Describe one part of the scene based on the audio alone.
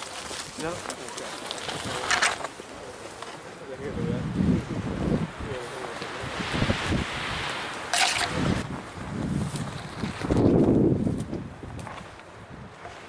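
Footsteps crunch through dry brush.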